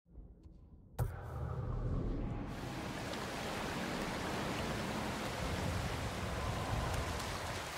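A stream rushes over rocks.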